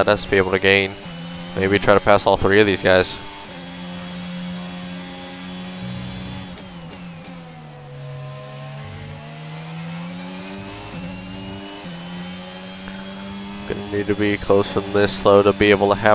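A racing car engine whines loudly, rising in pitch as it speeds up and dropping as it slows for a corner.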